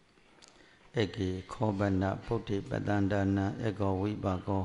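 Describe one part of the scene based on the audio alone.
An elderly man chants into a microphone, heard through loudspeakers.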